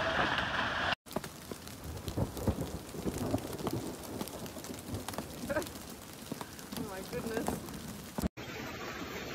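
Hailstones patter on open ground.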